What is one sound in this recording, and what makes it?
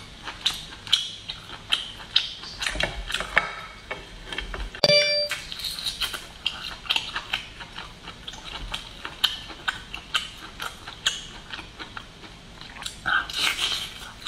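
Lobster shells crack and crunch as they are pulled apart by hand.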